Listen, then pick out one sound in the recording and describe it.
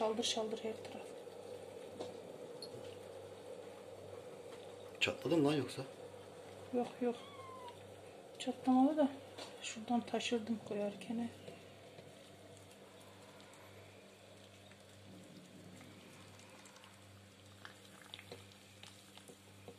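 Hot water pours from a kettle into a glass jar.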